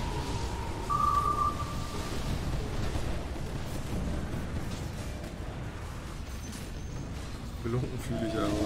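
Game battle effects clash and crackle.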